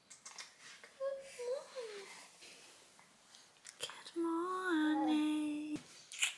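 A young woman speaks softly and warmly, close by.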